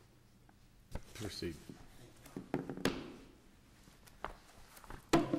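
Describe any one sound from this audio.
An older man speaks briefly into a microphone in a calm voice.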